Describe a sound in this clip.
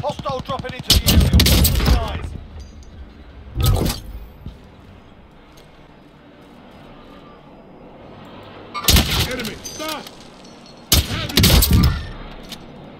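A sniper rifle fires loud shots.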